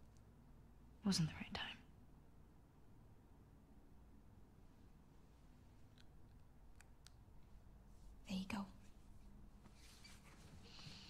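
Another young woman answers softly.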